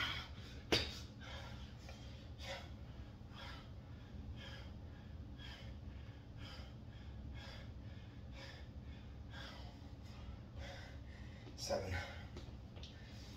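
Sneakers thud and shuffle quickly on a floor mat.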